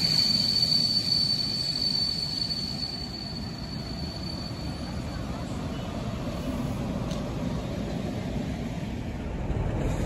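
A passing train's coaches rumble and clatter along the rails.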